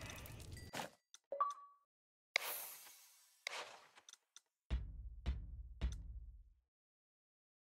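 Menu clicks chime softly.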